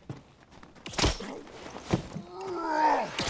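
A sword strikes a creature with a sharp impact.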